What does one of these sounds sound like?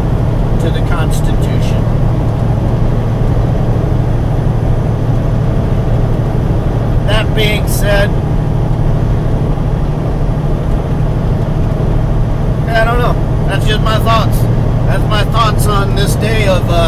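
A man talks with animation close to a microphone, in short bursts.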